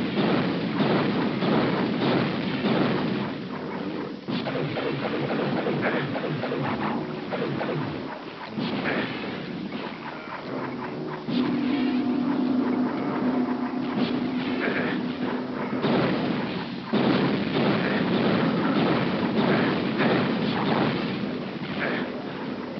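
Fireballs whoosh and roar in bursts.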